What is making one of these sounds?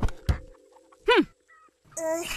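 A girl's cartoon voice makes a short sound.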